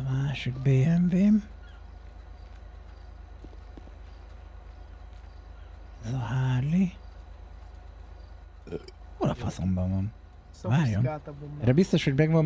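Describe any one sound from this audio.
A man talks casually and with animation, close to a microphone.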